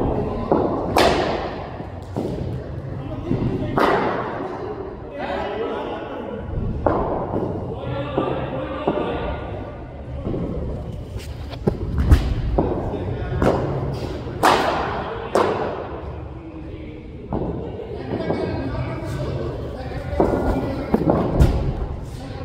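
A cricket bat strikes a ball with sharp cracks, again and again.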